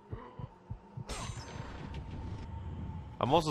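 A chest creaks open with a bright magical shimmer.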